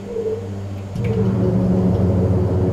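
Tyres thump onto a runway and rumble along it.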